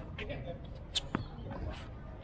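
A tennis racket strikes a ball with a sharp pop outdoors.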